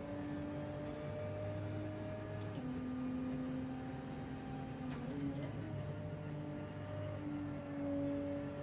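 A racing car engine drones steadily, its pitch jumping as it shifts gears.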